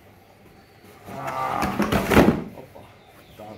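Cardboard rustles and scrapes as hands move boxes.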